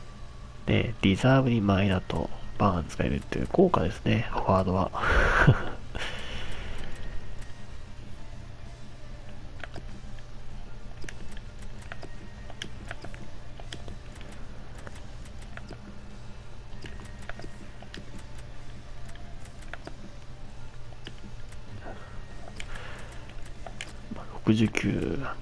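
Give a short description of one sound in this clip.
A game menu ticks softly as the selection moves.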